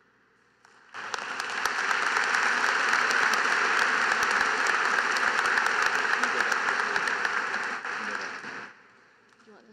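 A large crowd applauds in a big echoing arena.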